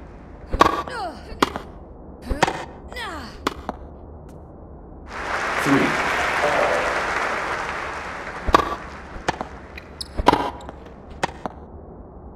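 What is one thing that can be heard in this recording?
Tennis balls are struck with sharp pops.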